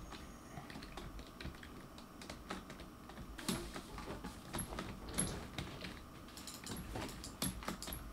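Game blocks are placed with quick soft clicks.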